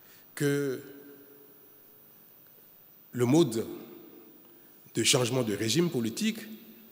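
A man speaks formally into a microphone, his voice carrying through a large room.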